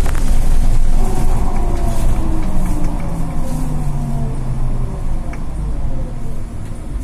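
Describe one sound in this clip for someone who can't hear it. A bus motor's whine falls in pitch as the bus slows down.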